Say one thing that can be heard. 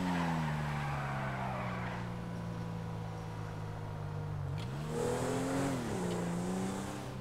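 A car engine hums steadily, then revs up and settles again.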